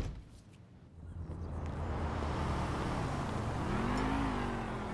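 Traffic rumbles past on a road outdoors.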